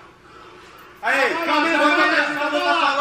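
A young man exclaims loudly and excitedly close by.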